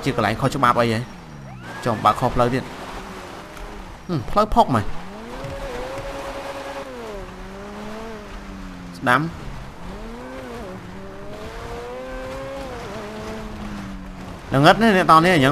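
A car engine drones and revs, rising and falling in pitch.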